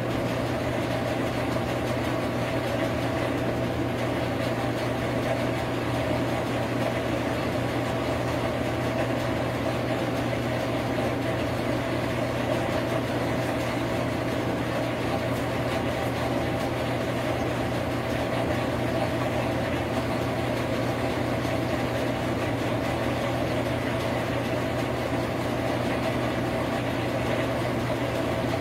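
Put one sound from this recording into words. A washing machine drum spins with a steady whirring hum.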